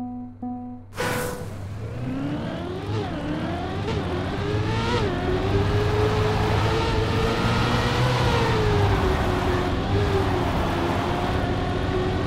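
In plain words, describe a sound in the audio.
A race car engine revs up and roars, rising and falling in pitch as gears change.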